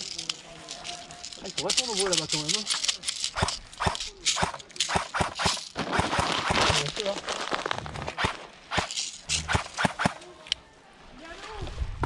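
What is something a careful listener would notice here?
Dry leaves rustle and crunch close by.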